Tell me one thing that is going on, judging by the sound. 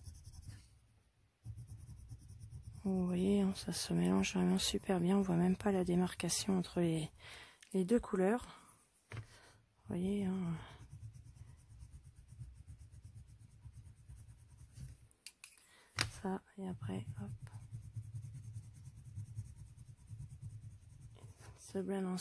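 A pencil scratches softly on paper.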